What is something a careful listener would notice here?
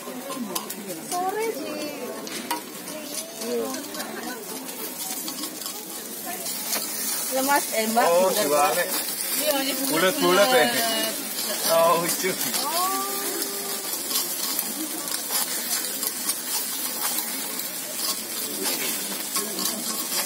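Batter sizzles steadily on a hot griddle.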